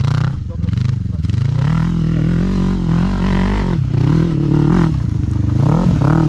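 An all-terrain vehicle's engine revs loudly, rising and falling in pitch close by.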